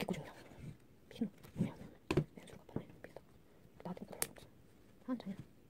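Hands rustle and rub through a doll's stiff synthetic hair.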